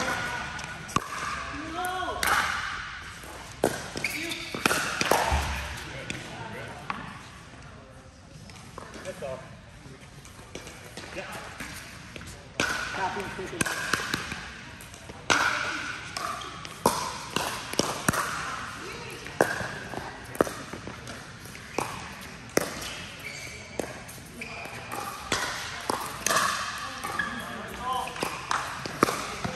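Paddles hit a plastic ball with sharp pops in a large echoing hall.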